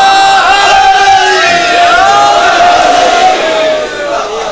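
A man chants in long, drawn-out tones through a microphone.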